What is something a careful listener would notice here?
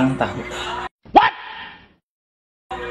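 A young man shouts with a strained voice.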